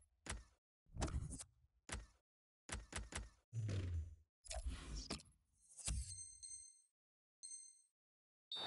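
Menu selection sounds click and tick several times.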